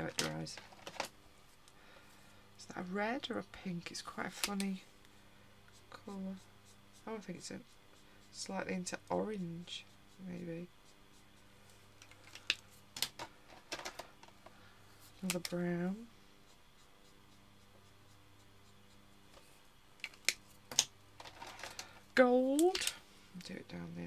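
A plastic marker cap clicks off and on.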